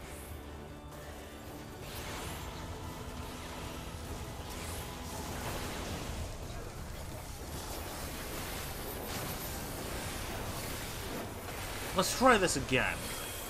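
Orchestral game music plays steadily.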